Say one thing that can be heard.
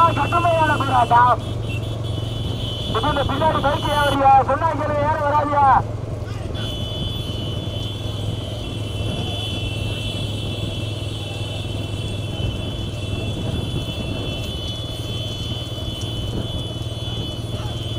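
Cart wheels rumble on the road.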